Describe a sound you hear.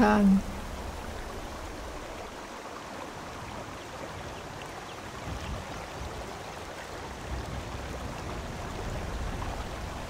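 A waterfall rushes steadily in the distance.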